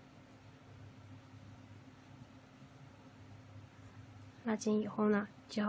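A crochet hook softly draws yarn through loops.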